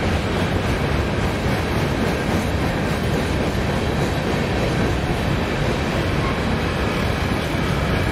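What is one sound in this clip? Steel wheels clatter rhythmically over rail joints.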